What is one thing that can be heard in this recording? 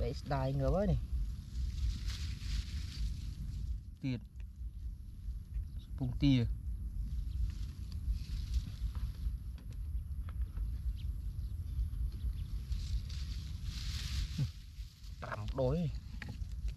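Dry straw rustles and crackles under hands.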